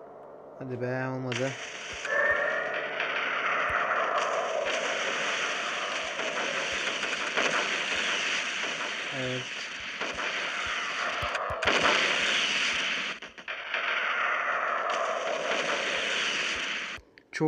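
Naval guns fire and shells explode with heavy booms.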